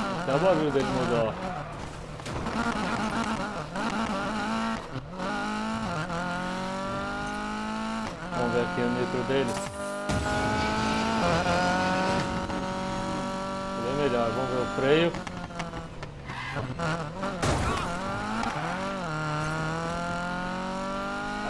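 Tyres skid and slide across dirt.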